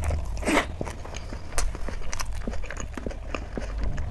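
Fingers squelch in soft food on a metal plate.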